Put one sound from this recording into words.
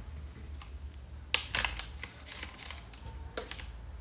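Crayons clatter as they are handled in a plastic box.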